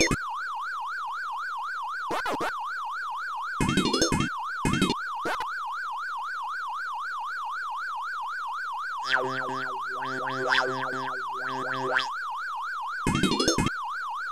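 A fast warbling electronic chirp repeats steadily.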